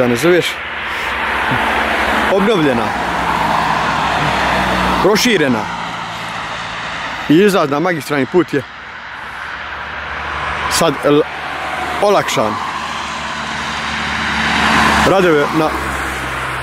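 Cars drive past on a wet road with a swelling hiss of tyres.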